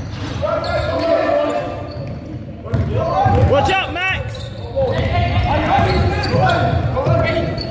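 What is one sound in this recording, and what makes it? Young men shout to each other across the court.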